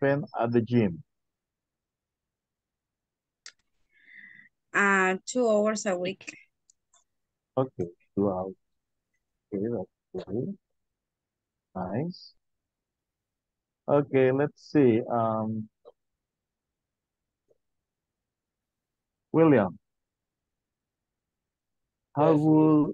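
A man speaks calmly through an online call, pausing between phrases.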